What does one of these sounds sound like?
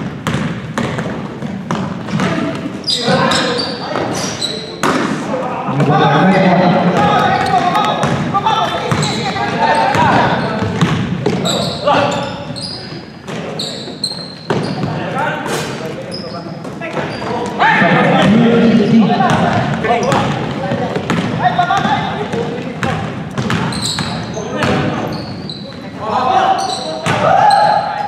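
Sneakers squeak sharply on the hardwood floor.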